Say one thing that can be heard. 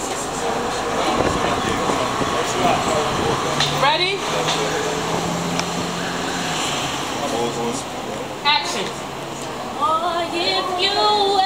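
Young men talk and call out nearby outdoors.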